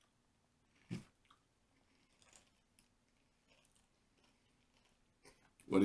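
A boy crunches on chips.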